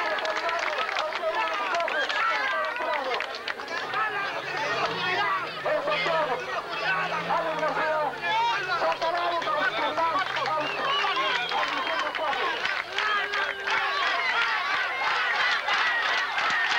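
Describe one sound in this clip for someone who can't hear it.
A large crowd cheers and chants loudly throughout.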